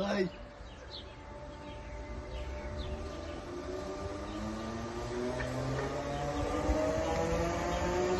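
An electric train approaches with a rising, whining hum.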